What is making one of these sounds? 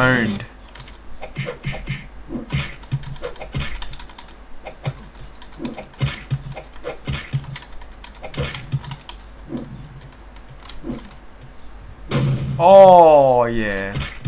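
Punches and kicks land with quick, sharp thuds.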